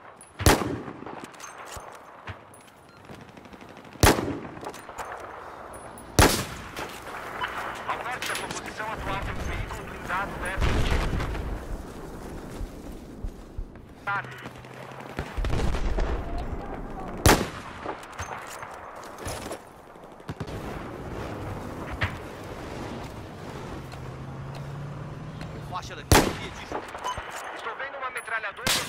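Gunshots crack out in sharp single bursts.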